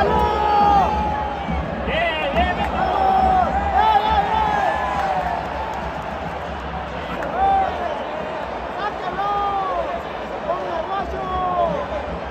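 A large crowd cheers and shouts in a big open stadium.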